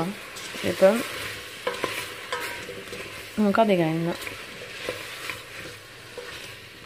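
Apple pieces sizzle softly in a hot pan.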